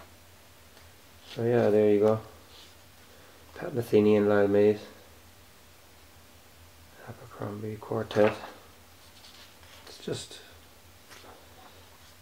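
Paper pages rustle and flutter as they are turned.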